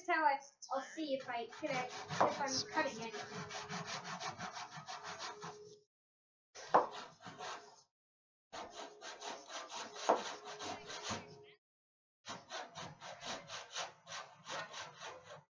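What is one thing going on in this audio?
A hand plane scrapes along wood in quick, repeated strokes.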